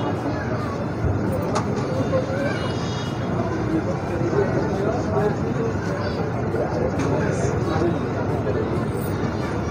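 A crowd of men and women chatter close by.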